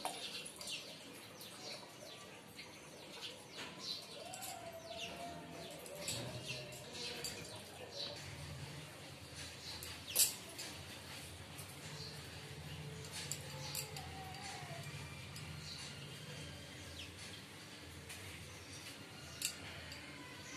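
Glass bangles clink softly.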